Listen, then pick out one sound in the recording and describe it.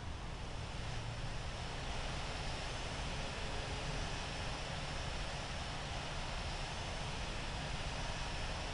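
A jet airliner's engines roar steadily on a runway.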